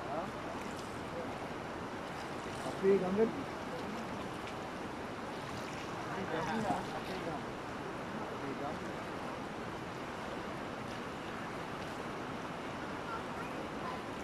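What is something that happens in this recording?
Shallow water trickles and splashes over stones.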